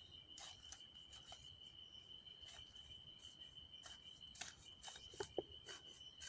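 A hoe chops into dry soil and grass with repeated soft thuds.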